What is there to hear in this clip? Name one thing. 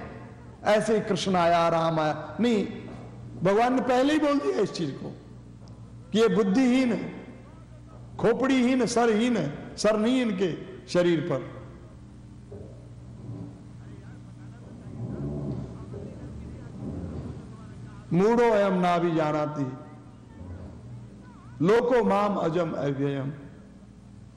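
An elderly man chants verses in a melodic voice, close to a microphone, with pauses between lines.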